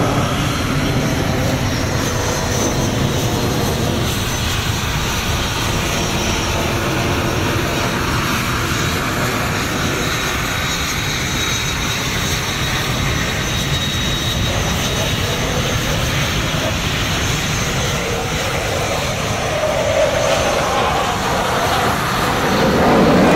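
A jet engine roars steadily overhead.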